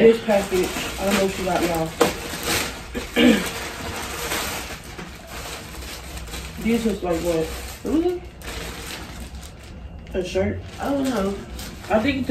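Plastic mailer bags crinkle and rustle as they are handled.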